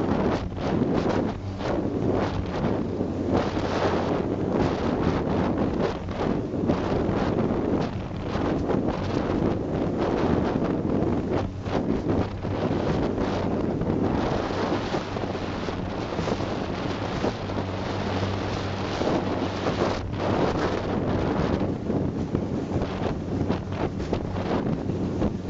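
Wind buffets loudly outdoors.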